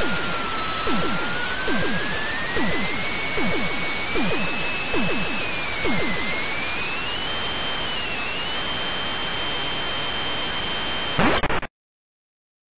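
A game ship's engine hums with a steady electronic tone that slowly rises and falls in pitch.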